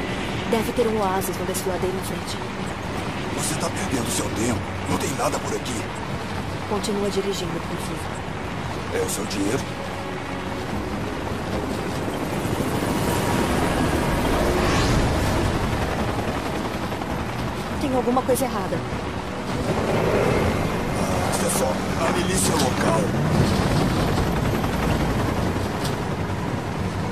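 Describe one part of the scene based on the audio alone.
An engine rumbles steadily as a truck drives.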